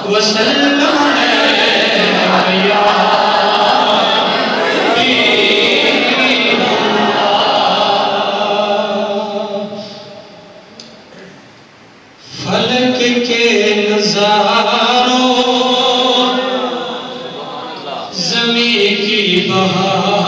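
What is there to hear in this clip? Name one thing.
A man chants melodically into a microphone over a loudspeaker, with a pause partway through.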